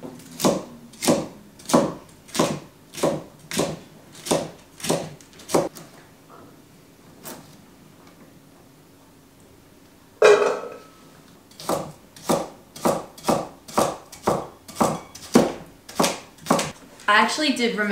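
A knife chops rhubarb on a wooden chopping board.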